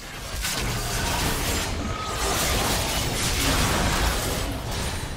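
Game spell effects crackle and boom in a fierce fight.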